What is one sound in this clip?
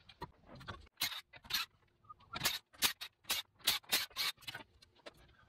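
An impact wrench rattles in short bursts.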